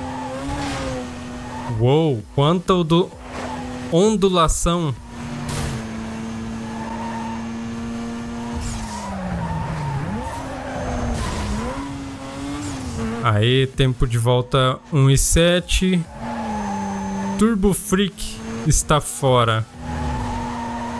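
A racing car engine drones steadily with shifting pitch.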